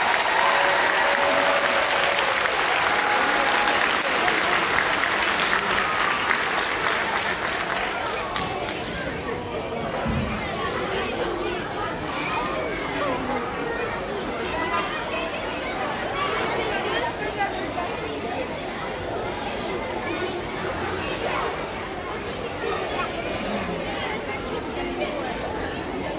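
A crowd of young children chatters and calls out nearby.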